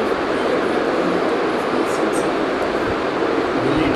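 A teenage boy speaks softly close by.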